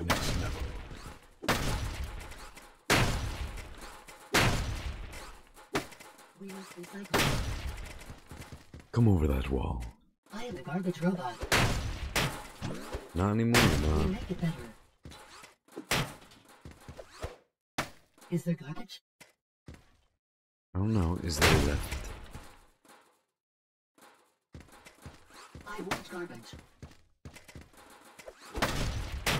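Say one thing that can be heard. Gunfire blasts repeatedly in quick bursts.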